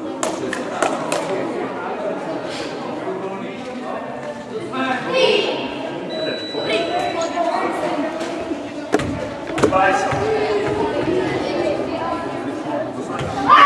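Children chatter and shout together in a large echoing hall.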